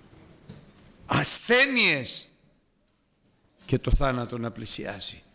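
An older man speaks emphatically into a microphone, in short bursts with pauses.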